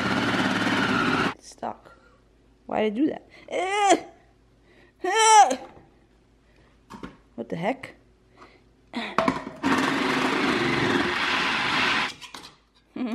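A food processor whirs loudly, chopping.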